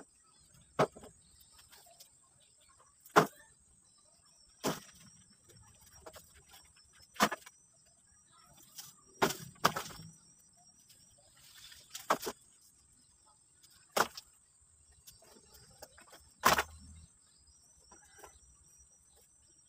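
Dry branches scrape and rustle as they are dragged.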